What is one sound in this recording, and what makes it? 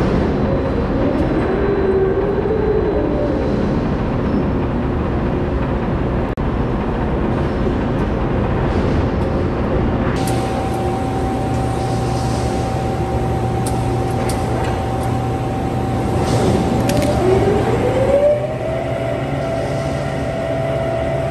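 Heavy machinery hums steadily in a large echoing hall.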